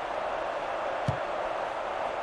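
A football is kicked with a single dull thud.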